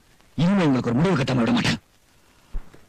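A woman speaks tearfully, close by.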